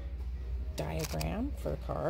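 Plastic-wrapped cards rustle as a hand flips through them.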